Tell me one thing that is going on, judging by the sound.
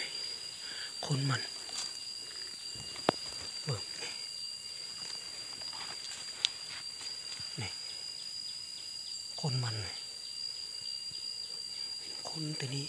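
Footsteps crunch through dry leaves on the ground.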